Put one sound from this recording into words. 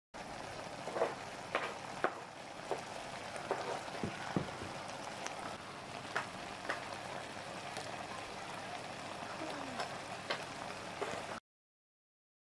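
Food sizzles and bubbles in a hot pan, with soft pops and crackles.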